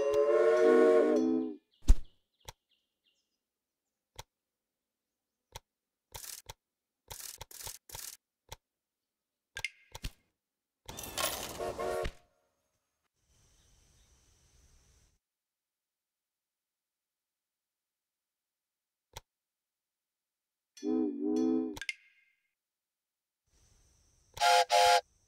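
A short musical chime plays.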